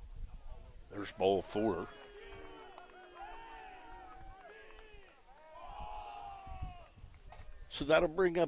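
Young men shout across an outdoor field.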